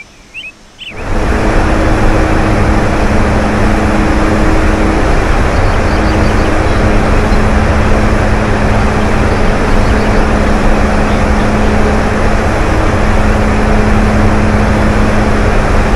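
A propeller plane's engines drone loudly and steadily from inside the cabin.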